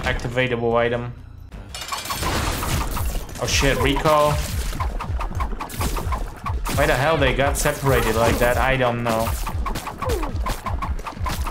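Rapid game shots pop and thud in quick succession.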